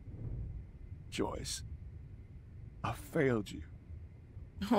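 A man speaks softly and sadly, close by.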